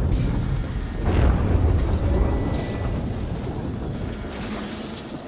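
Flames burst with a loud roar.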